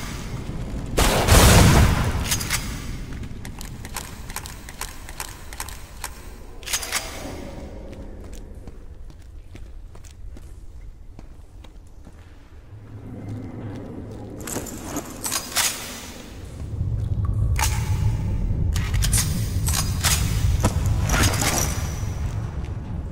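Gunshots go off in loud bursts, with echoes.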